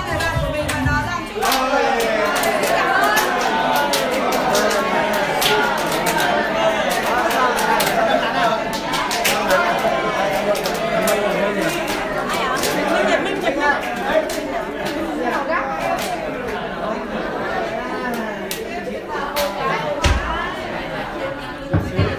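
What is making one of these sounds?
Several women laugh and chatter close by.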